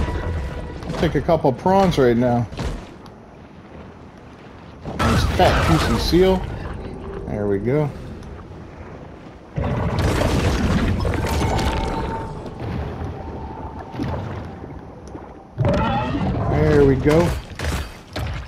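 A huge sea creature lets out deep, warbling roars.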